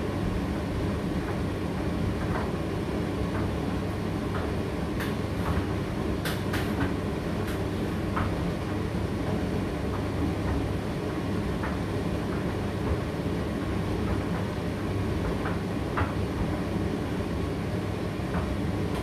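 Clothes tumble and knock inside a tumble dryer's drum.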